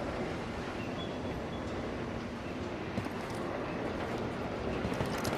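Birds chirp.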